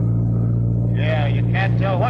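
A middle-aged man speaks urgently.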